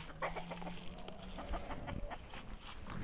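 Hens cluck softly nearby.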